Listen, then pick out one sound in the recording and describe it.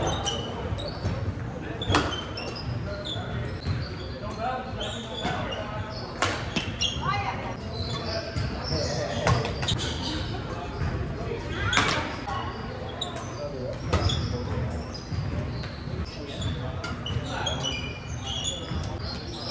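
Badminton rackets strike a shuttlecock with sharp pops in an echoing hall.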